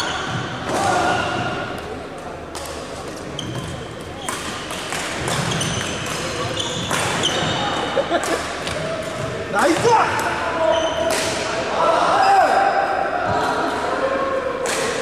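Athletic shoes squeak on a court floor.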